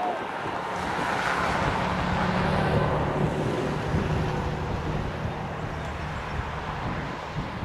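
Wind blows across an open field.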